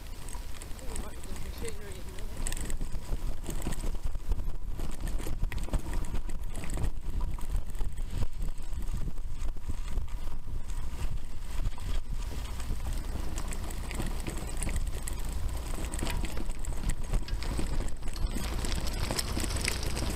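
Bicycle tyres rumble and crunch over a rough dirt track.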